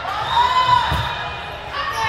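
A volleyball is struck with a hand with a sharp slap.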